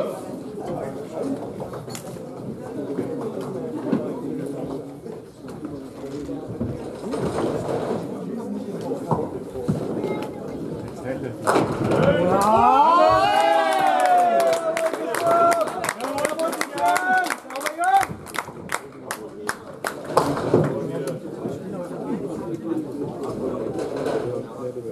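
Men chatter in a hall.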